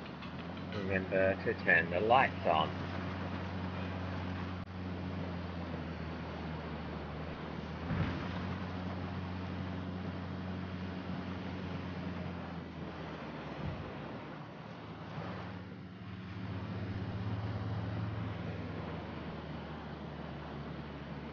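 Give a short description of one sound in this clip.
A vehicle engine rumbles steadily at low speed.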